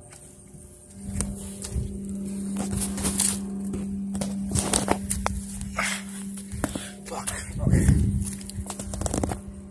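Footsteps crunch on gritty ground.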